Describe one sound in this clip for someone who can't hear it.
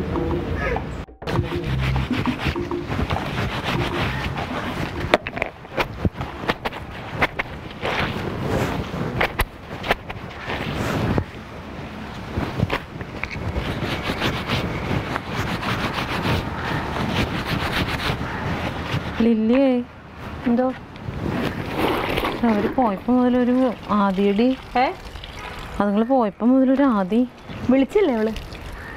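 Wet cloth is scrubbed and rubbed by hand.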